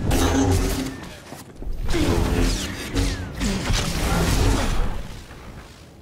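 Energy blades swing and clash in a fight.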